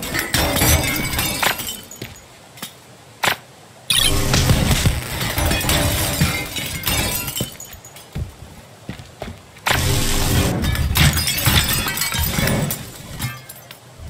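Glass and rubble crumble and clatter in bursts.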